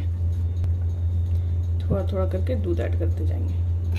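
Milk pours into a bowl with a soft splash.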